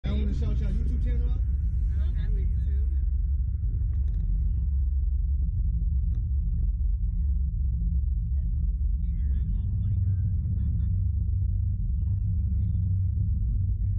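Young women laugh and talk with excitement close by.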